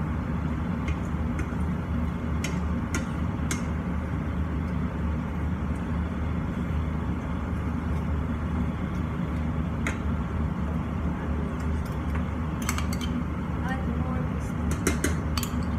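Food sizzles steadily in a hot pan.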